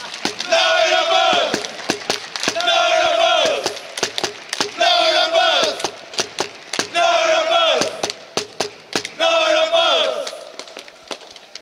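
A group of young men shout together in loud, repeated calls, heard from a distance outdoors.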